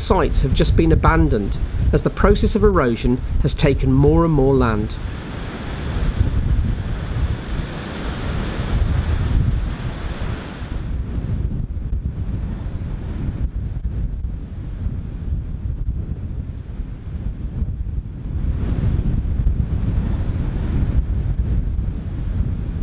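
Wind blows hard outdoors, buffeting with a low rumble.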